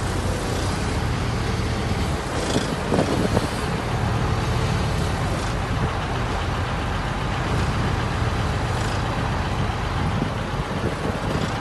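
A diesel engine idles steadily with a low rumble.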